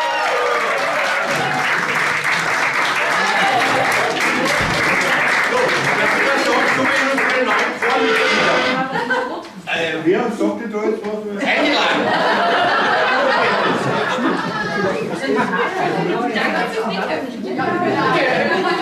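A group of men and women chatter and call out loudly.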